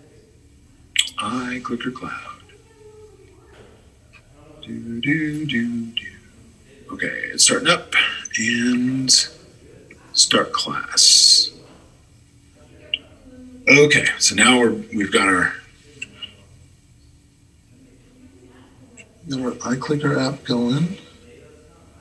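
An elderly man speaks calmly over an online call, in bursts with pauses.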